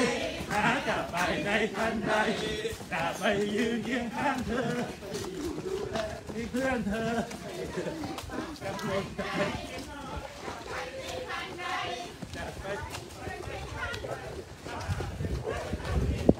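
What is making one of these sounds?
Many footsteps patter on a path.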